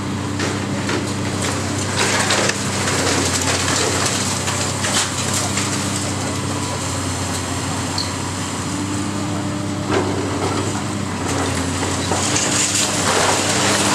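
Debris crashes and clatters as a building is torn down.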